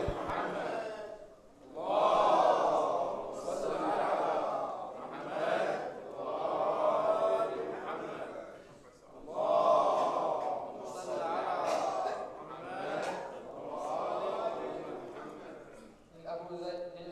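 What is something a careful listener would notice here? A man recites through a microphone in a large echoing hall.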